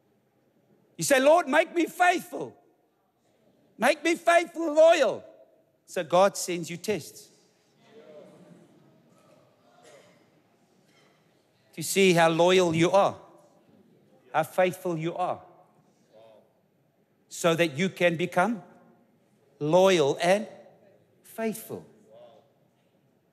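A middle-aged man speaks emphatically into a microphone in a large hall, with pauses between phrases.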